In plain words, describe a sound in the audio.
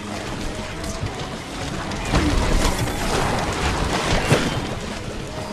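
Game sound effects pop and splat over each other.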